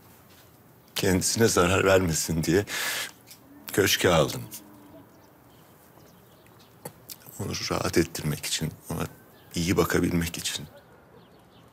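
An older man speaks calmly and quietly, close by.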